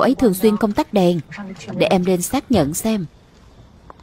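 A woman speaks calmly up close.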